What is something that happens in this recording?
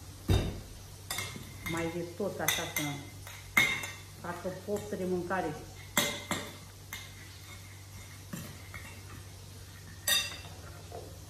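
A spoon clinks against a bowl while stirring.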